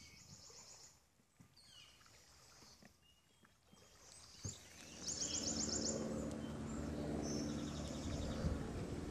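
A paddle splashes softly in calm water in the distance.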